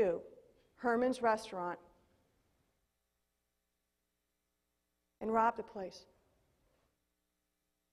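A woman speaks through a microphone in a large echoing hall.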